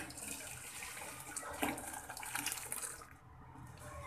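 Liquid pours and splashes into a hot pan.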